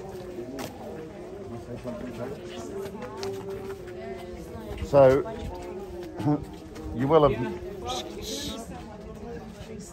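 An older man talks calmly close by, slightly muffled.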